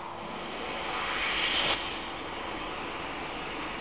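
Water rushes steadily down a small waterfall.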